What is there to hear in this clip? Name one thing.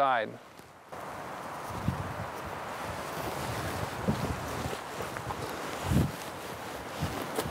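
Soil crumbles and rustles as a hand sprinkles it.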